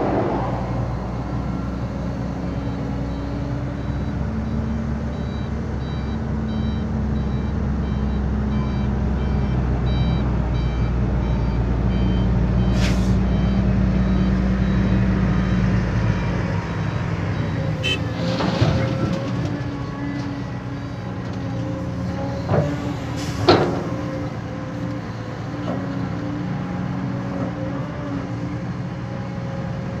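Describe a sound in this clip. An excavator engine rumbles and whines steadily nearby.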